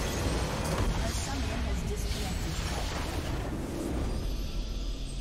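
A large explosion roars and rumbles.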